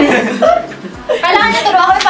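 A young woman talks and laughs.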